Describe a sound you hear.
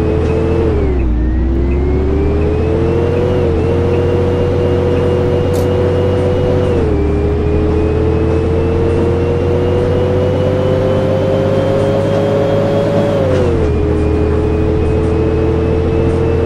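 A bus engine hums and rises and falls in pitch as the bus changes gear.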